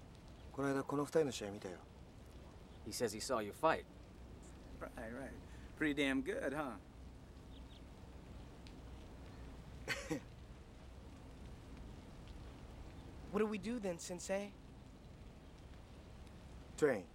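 Several men talk in turn, close by and calmly.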